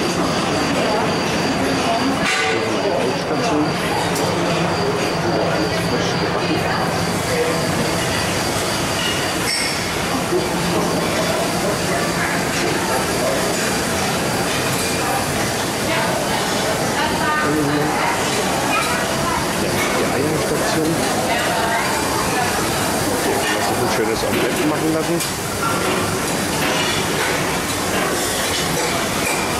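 A crowd of people chatters and murmurs all around in a busy room.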